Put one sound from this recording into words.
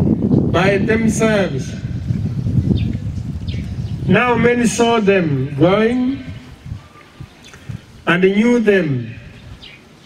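A man chants slowly into a microphone, heard through loudspeakers outdoors.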